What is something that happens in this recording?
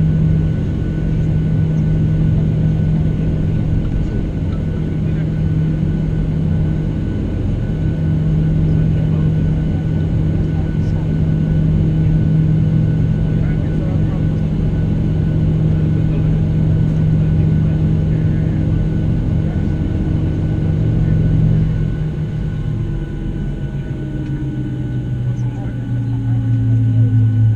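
Jet engines hum steadily inside an airliner cabin, shifting in pitch near the end.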